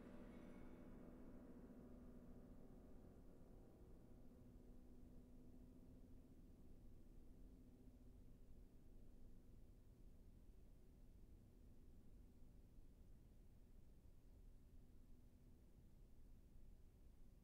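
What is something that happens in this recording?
A grand piano plays softly in a resonant hall, with long ringing notes.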